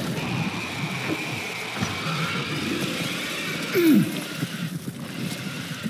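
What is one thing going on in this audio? Wet flesh squelches and tears.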